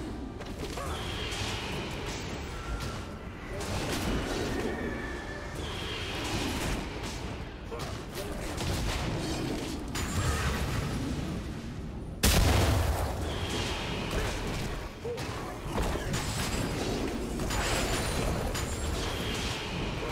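Blows strike with sharp impacts.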